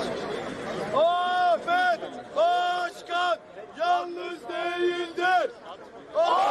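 A group of men chants loudly in rhythm nearby.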